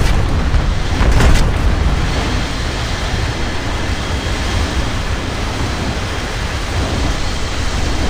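Explosions boom as a plane bursts into flames.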